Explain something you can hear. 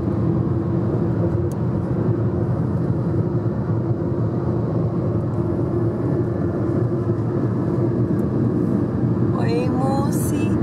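A car engine hums and tyres roar steadily on a road, heard from inside the car.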